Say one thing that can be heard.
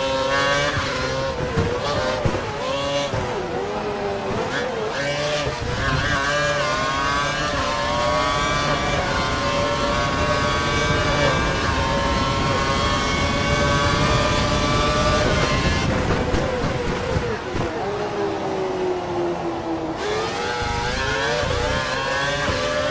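A racing car engine whines, rising in pitch through the gears and dropping when braking.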